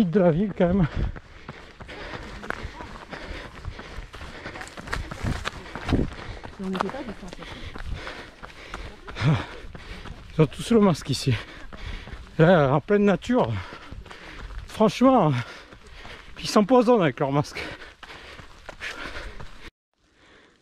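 A man talks breathlessly and close by while walking.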